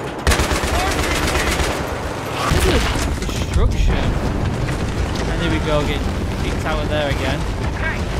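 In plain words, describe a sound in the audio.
Gunfire and explosions rumble loudly in a video game.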